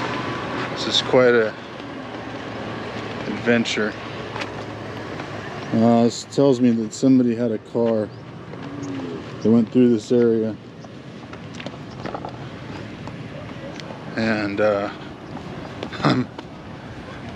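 A man speaks close by in a casual, conversational way.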